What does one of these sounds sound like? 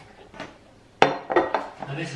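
A mug is set down on a hard counter with a knock.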